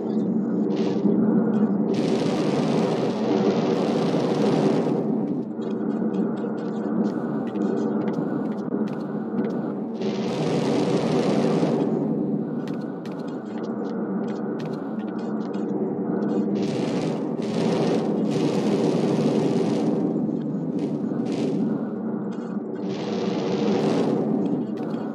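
A jetpack engine roars steadily, with bursts of hissing thrust.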